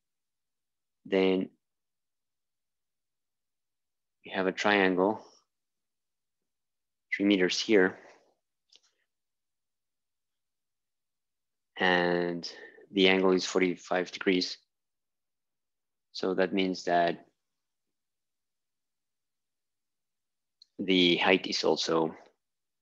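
A young man speaks calmly in short bursts, close by.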